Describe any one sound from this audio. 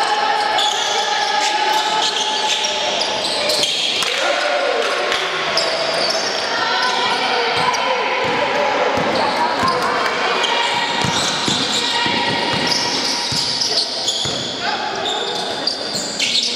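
Players shout to one another in a large echoing gym.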